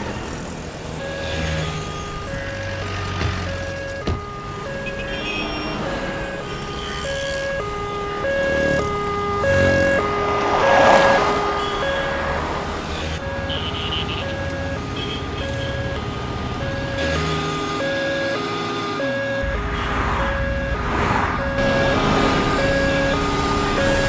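An ambulance siren wails with two alternating tones.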